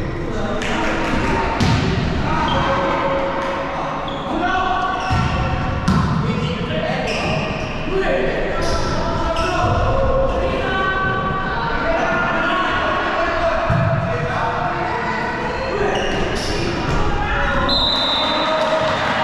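Young players shout to each other in an echoing hall.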